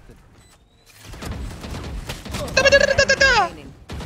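Rapid gunfire crackles from a game.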